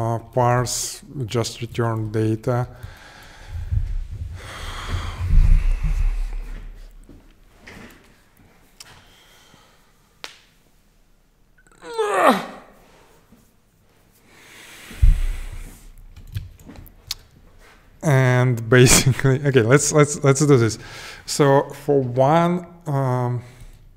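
A young man talks casually and close to a microphone, with pauses.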